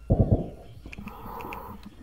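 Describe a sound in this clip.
Bubbles gurgle and rise underwater.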